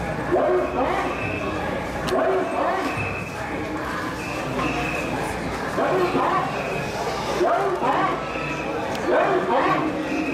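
Many sandals shuffle and scrape on the road.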